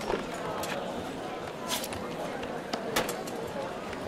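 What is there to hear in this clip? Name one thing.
A knife clatters onto a wooden table.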